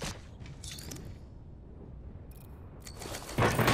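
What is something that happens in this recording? Game menu clicks and beeps sound in quick succession.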